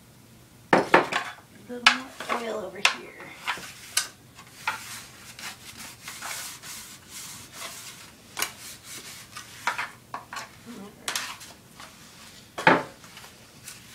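Hands press and pat soft dough on a baking pan.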